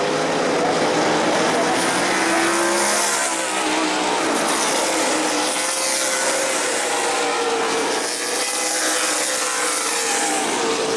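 Race car engines roar loudly as the cars speed past.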